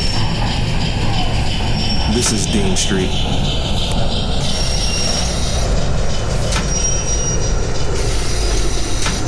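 A train engine rumbles steadily as the train rolls along.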